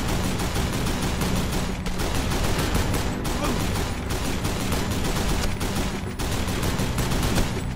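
A mounted machine gun fires in rapid, continuous bursts.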